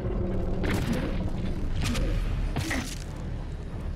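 A demon snarls up close.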